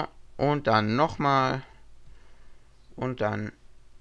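A small plastic controller slides along a rail and clicks into place.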